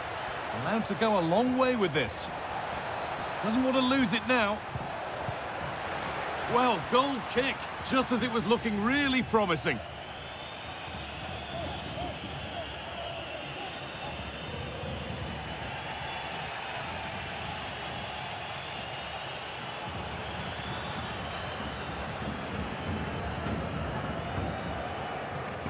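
A large stadium crowd roars and chants steadily in the distance.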